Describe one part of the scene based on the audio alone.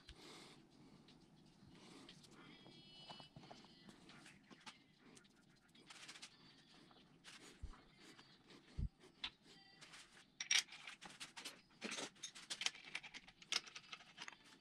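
Metal parts clink and clatter as they are handled.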